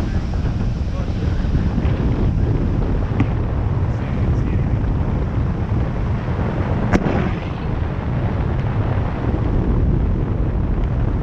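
Strong wind roars steadily past the microphone.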